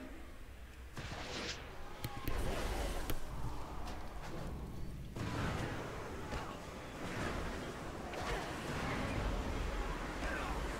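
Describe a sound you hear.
Game spell effects whoosh and crackle during combat.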